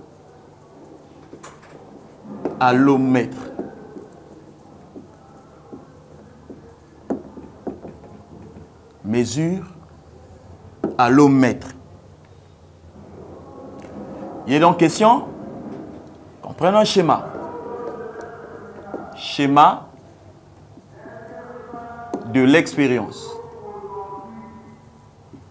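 A man speaks calmly, as if teaching.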